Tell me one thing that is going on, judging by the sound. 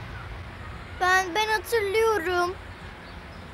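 A young girl speaks nearby in a worried tone.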